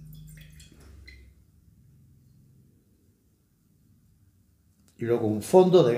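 An older man sips wine with a soft slurp.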